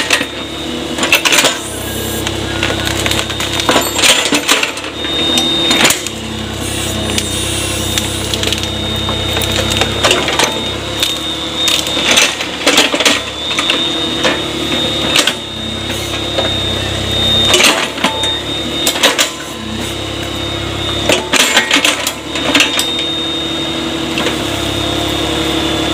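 An excavator bucket scrapes and thumps into wet soil.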